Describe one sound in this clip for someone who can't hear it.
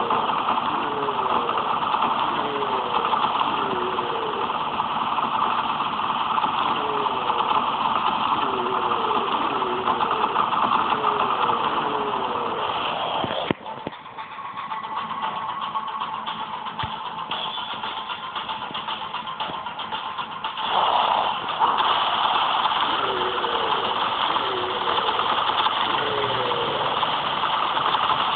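Monsters growl and roar.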